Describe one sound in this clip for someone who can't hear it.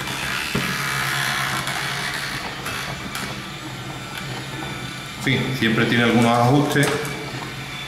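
A small geared electric motor whirs.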